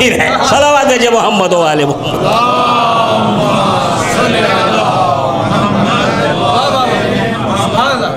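A middle-aged man speaks with feeling into a microphone, in a slow, chanting voice.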